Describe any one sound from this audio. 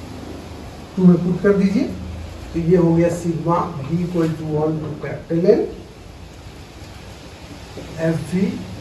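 A man speaks calmly, close by, with pauses.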